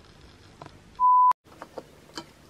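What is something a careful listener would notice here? A short electronic test tone beeps.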